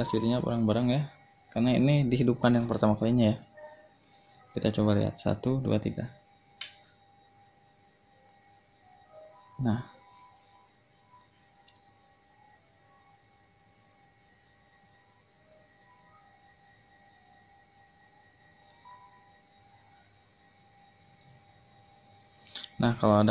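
An electronic keyboard gives off a faint, steady high whine.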